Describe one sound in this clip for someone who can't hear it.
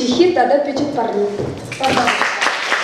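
A woman speaks with animation through a microphone in an echoing hall.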